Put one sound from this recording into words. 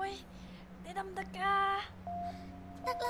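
A young woman calls out in a strained, breathless voice.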